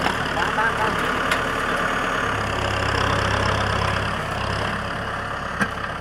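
Dirt and stones scrape and crunch under a tractor's blade.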